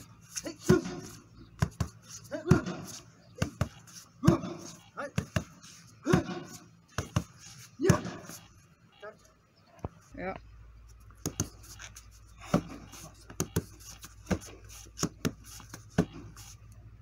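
Fists and feet thump hard against a padded strike shield in quick bursts.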